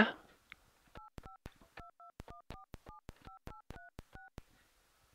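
Telephone keys are pressed, each giving a short beeping dial tone.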